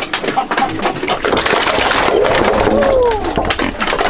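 Pigs grunt and squeal.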